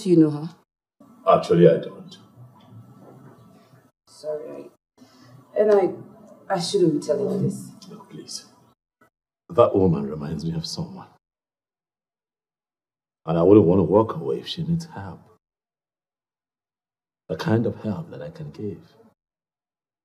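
A man speaks close by in a low, earnest voice.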